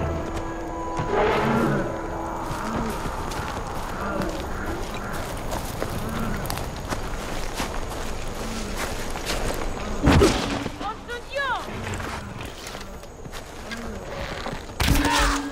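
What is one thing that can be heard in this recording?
Footsteps thud steadily on dry ground.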